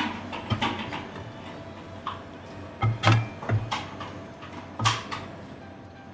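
Ceramic plates clatter and clink as they are stacked.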